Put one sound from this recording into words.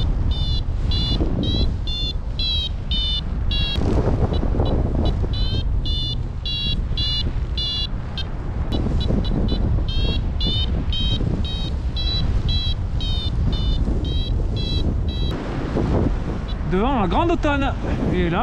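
Wind rushes and buffets loudly past the microphone.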